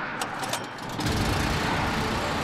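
A small generator engine starts and runs with a low rumble.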